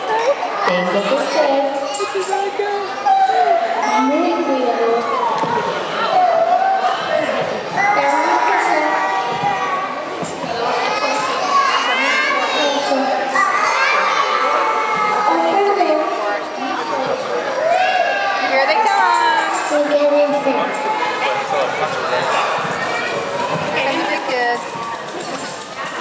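Young children chatter and call out.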